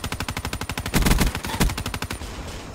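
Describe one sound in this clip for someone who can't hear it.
An explosion booms nearby.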